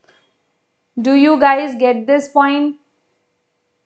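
A young woman speaks calmly and briefly into a close microphone.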